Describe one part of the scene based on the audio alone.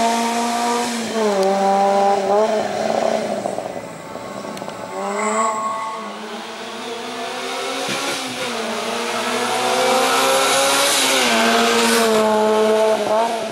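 A small car engine revs hard and shifts gears as the car races past.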